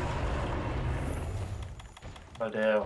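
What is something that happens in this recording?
A heavy blow strikes.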